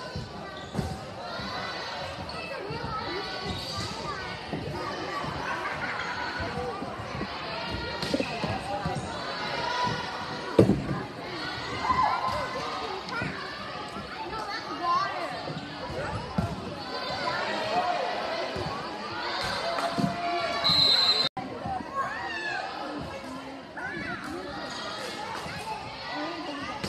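A volleyball is struck by hands.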